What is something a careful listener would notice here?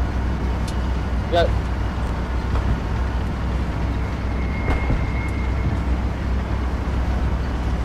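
A tank engine rumbles, heard from inside the hull.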